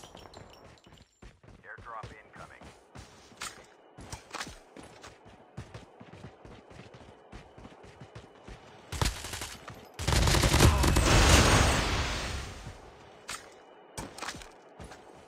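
Footsteps crunch over dry ground at a steady pace.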